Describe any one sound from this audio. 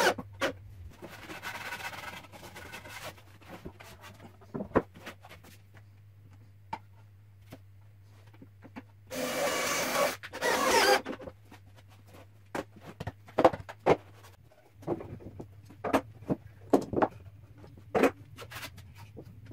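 A hand brushes across a wooden board.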